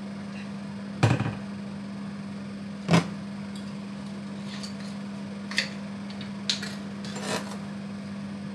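Metal cookware clinks and clatters on a stovetop.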